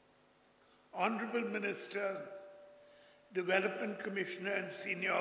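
An elderly man speaks calmly into a microphone, heard through loudspeakers in a large hall.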